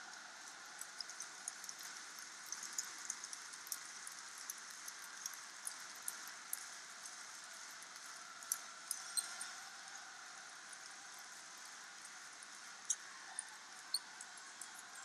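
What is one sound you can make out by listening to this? People clap their hands in scattered claps.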